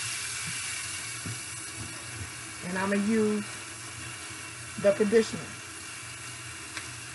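Water runs from a tap and splashes into a metal sink.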